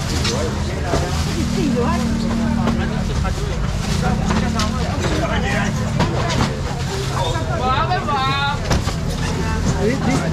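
A busy crowd of men and women chatters all around.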